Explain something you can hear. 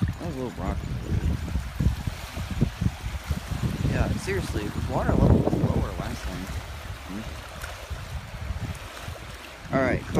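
Small waves lap gently against a shore.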